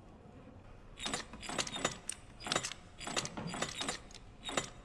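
Small metal dials click and rattle as they turn.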